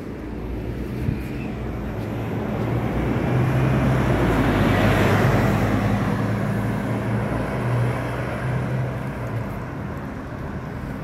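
A bus engine rumbles close by as the bus pulls away and fades.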